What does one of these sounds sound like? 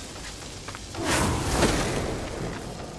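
An explosion bursts with a roar.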